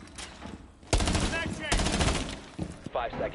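A gun fires loud shots that echo.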